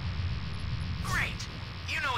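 A bright game chime rings out.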